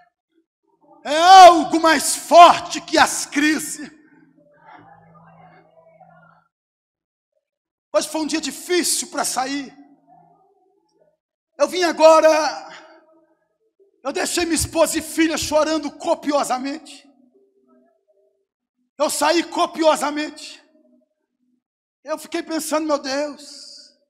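A man speaks forcefully through a microphone and loudspeakers in a large echoing hall, in bursts with pauses.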